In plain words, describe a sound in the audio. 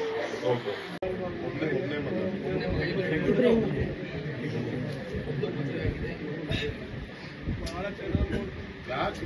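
A man speaks calmly to people nearby.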